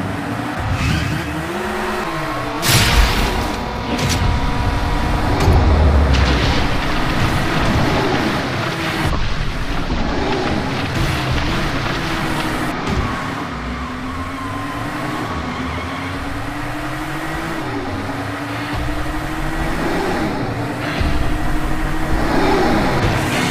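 A toy race car engine whines steadily, rising and falling in pitch as it speeds along.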